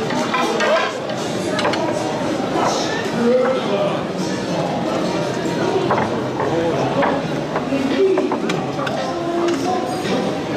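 A crowd of adults and children chatters nearby.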